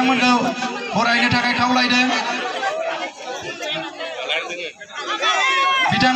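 A woman sings through a microphone and loudspeakers.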